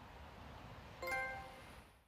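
A short electronic notification chime rings out.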